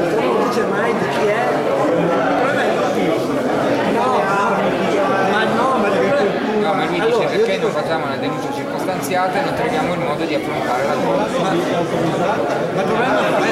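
A crowd of adult men and women chatter all around, close by.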